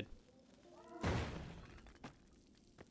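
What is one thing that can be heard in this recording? An explosion bursts with a loud rumbling boom.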